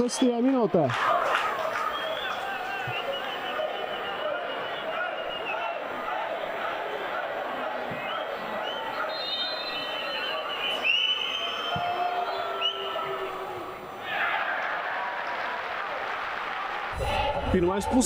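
A crowd murmurs and chatters across a large open stadium.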